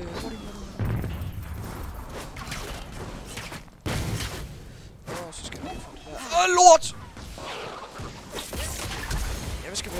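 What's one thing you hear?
Game combat hits clash and thud.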